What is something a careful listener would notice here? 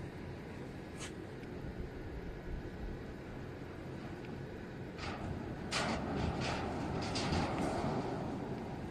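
A metal ramp clanks and thuds under a vehicle.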